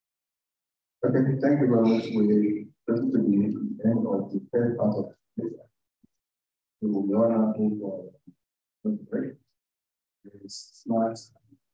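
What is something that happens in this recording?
A man speaks into a microphone in a large room, heard through an online call.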